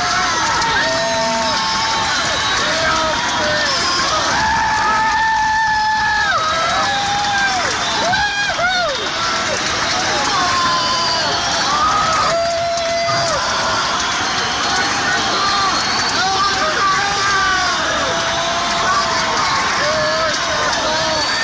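A drummer beats the drums.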